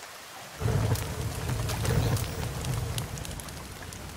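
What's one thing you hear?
A fire roars with a low rumble.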